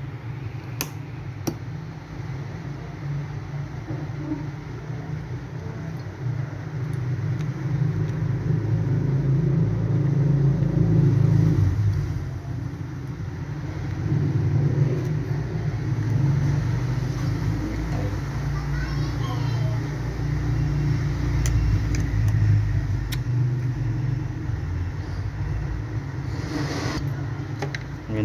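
Small metal pliers click and snap against metal parts.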